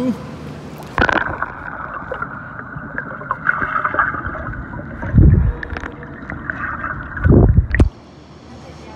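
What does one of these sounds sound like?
Water gurgles and rumbles, muffled as if heard underwater.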